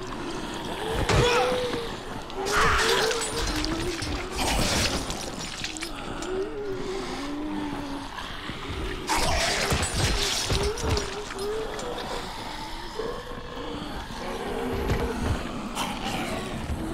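A blade strikes flesh with heavy wet thuds.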